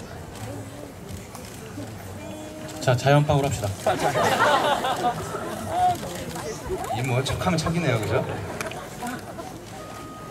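Young men on stage laugh.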